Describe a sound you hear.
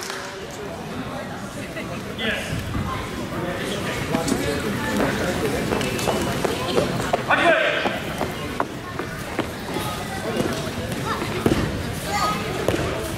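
Voices of a crowd murmur and call out in a large echoing hall.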